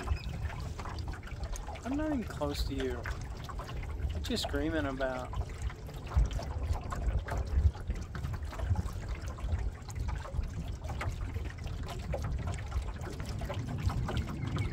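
Small waves lap against a boat's hull.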